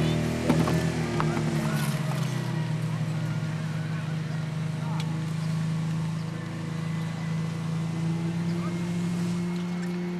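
Water jets spray from hoses in the distance.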